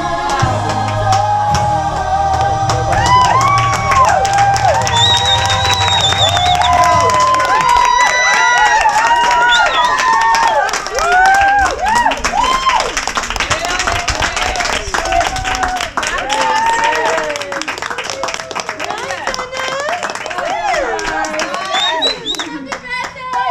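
A group of women clap their hands.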